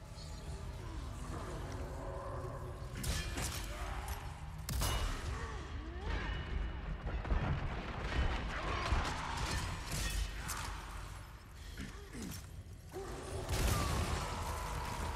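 Men groan and shout hoarsely nearby.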